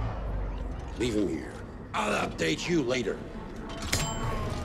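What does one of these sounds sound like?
A man speaks in a deep, gruff voice with animation.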